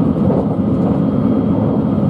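A level crossing bell rings briefly as the train passes.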